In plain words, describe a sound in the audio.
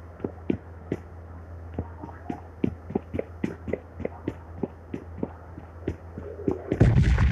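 Footsteps thud quickly and steadily on a wooden floor.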